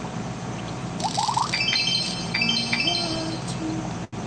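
Bright electronic chimes tinkle as a score tallies up.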